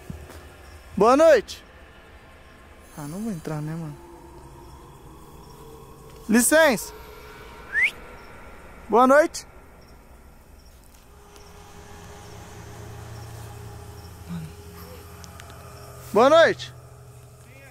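A man close by calls out in short, loud, rising and falling cries.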